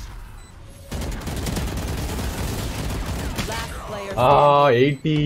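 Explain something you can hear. A rifle fires rapid bursts of loud shots.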